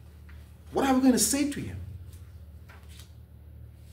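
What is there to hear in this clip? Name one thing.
Paper pages rustle as a man turns them.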